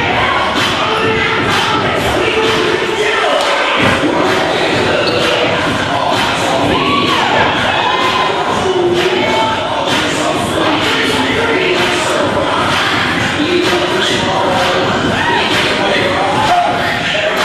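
Feet stamp and shuffle on a wooden floor as a group dances.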